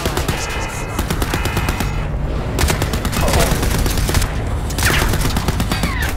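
Gunshots fire in rapid bursts with sharp metallic cracks.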